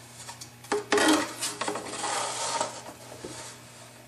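A sheet of paper rustles and slides.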